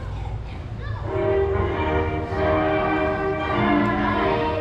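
A large crowd of children sings together in unison.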